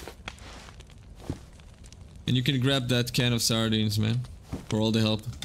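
Footsteps thud softly on wooden floorboards.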